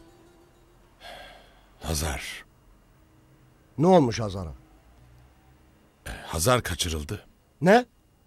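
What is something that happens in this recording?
An elderly man speaks in a low, serious voice, close by.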